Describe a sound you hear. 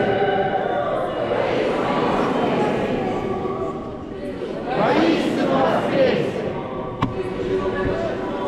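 A large crowd sings together in a big echoing hall.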